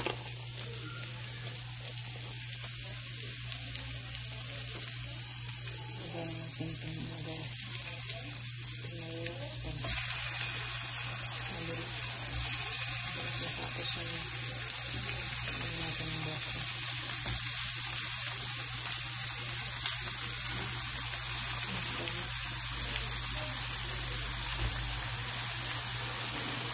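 Food sizzles and crackles steadily in a hot frying pan.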